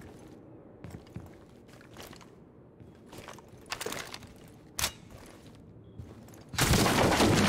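Footsteps thud softly on a hard floor.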